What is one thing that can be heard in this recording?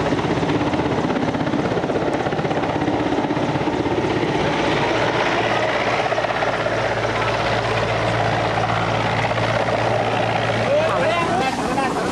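Rough water rushes and churns loudly.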